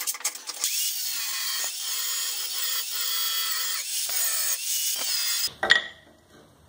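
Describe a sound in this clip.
An angle grinder whines loudly as it grinds metal.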